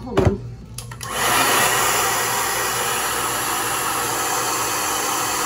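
A hair dryer blows with a loud, steady whoosh.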